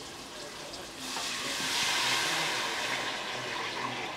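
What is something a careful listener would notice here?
Thick liquid pours into a pot with a gushing splash.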